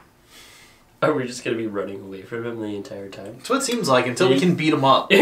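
Men laugh close by.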